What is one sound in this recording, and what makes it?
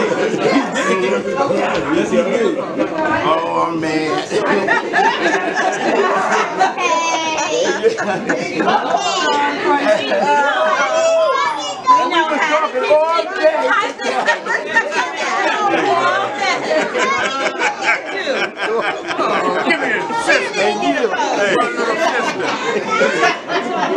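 A crowd of people chatter and call out excitedly nearby.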